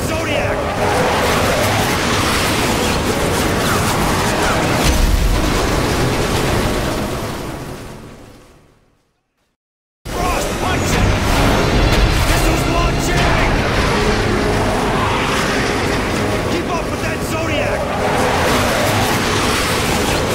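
A motorboat engine roars as the boat speeds over choppy water.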